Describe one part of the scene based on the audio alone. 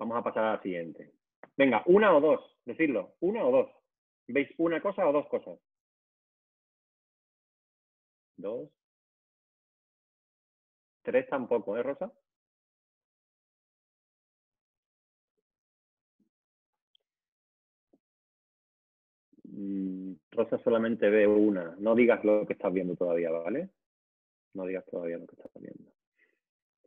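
A man speaks calmly over an online call, with pauses.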